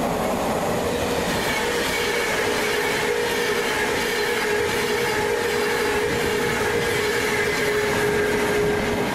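A passenger train rushes past close by with a rising whine and roar.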